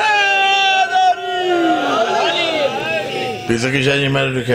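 A crowd of men shouts in response, raising their voices together.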